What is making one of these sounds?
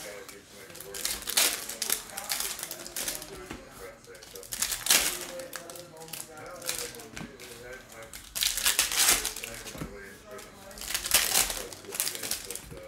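Foil card wrappers crinkle and tear.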